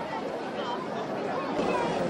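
A young girl speaks up close.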